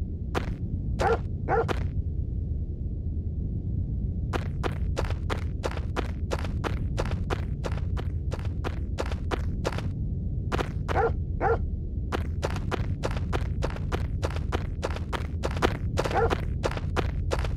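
A dog barks in short bursts.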